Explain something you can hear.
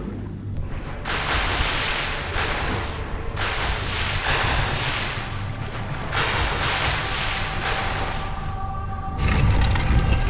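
Water splashes and churns.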